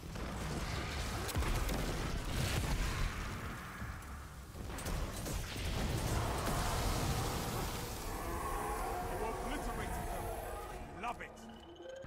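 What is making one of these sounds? Rapid gunfire blasts and explosions boom loudly.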